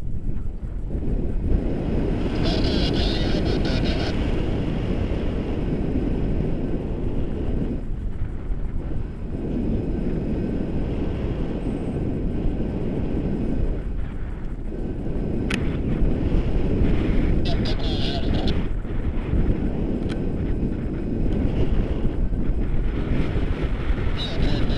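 Wind rushes loudly and steadily past a microphone outdoors.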